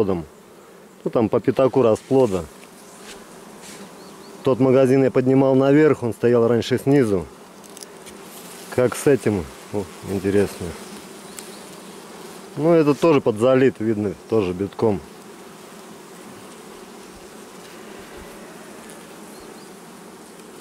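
Bees buzz softly close by.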